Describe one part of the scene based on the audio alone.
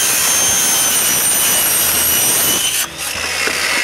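A circular saw whines loudly as it cuts through a board.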